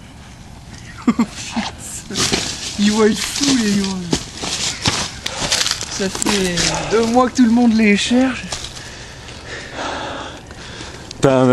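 Young men talk and shout with excitement close by outdoors.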